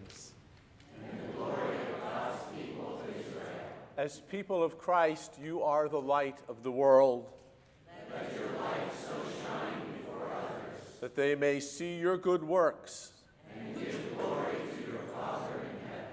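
A group of men, women and children recite together in unison.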